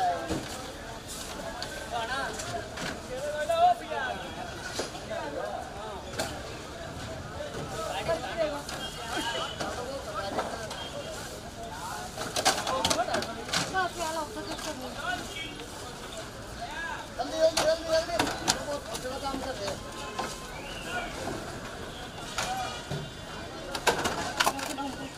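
Many men and women talk in a busy crowd nearby.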